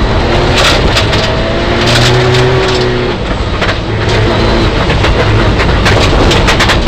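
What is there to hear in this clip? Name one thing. A car engine roars loudly from inside the cabin, rising and falling as the car speeds along.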